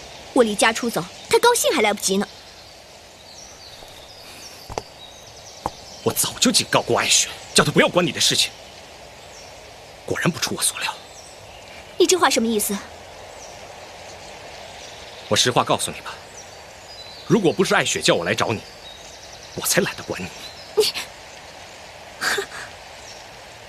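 A young woman speaks quietly and sadly, close by.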